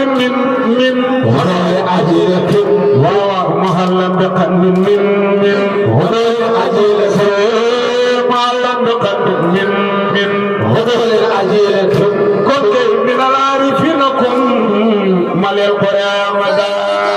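A man chants loudly into a microphone, leading the group.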